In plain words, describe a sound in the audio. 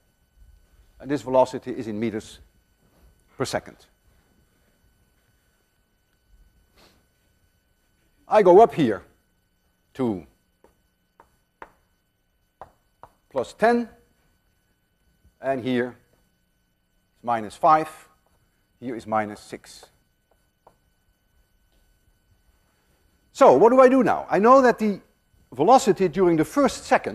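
An elderly man lectures calmly.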